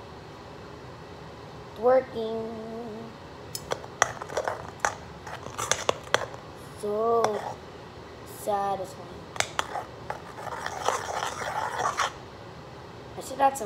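A metal spoon scrapes and clinks against a metal bowl.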